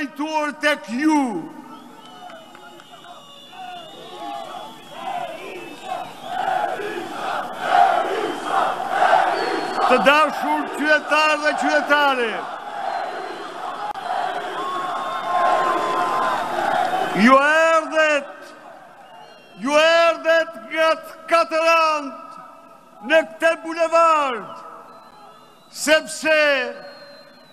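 An elderly man speaks forcefully through loudspeakers.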